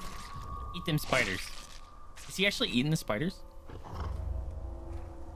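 A large beast growls and snarls.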